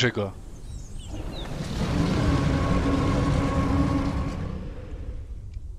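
A dinosaur growls with a deep rumble.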